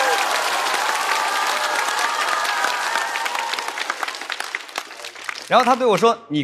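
An audience laughs and claps loudly.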